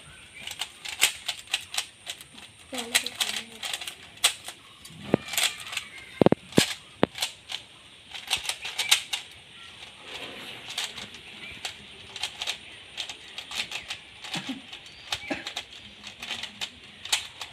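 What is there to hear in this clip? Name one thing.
A puzzle cube clicks and clatters rapidly as it is turned.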